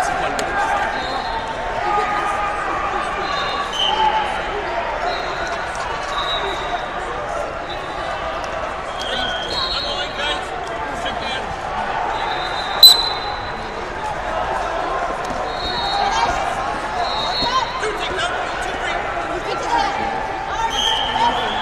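Shoes squeak sharply on a wrestling mat.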